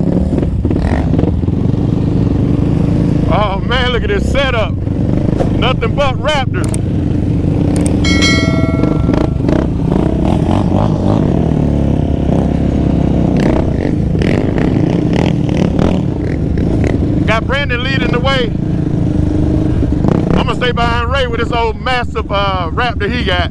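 A quad bike engine roars up close, steady throughout.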